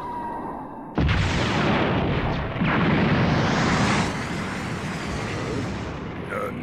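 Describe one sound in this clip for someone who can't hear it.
An explosion roars with a loud blast and rumbles on.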